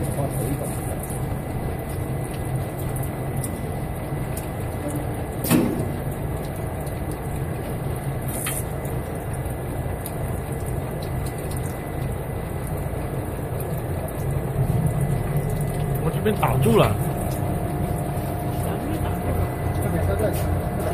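A bottling machine hums and rattles steadily.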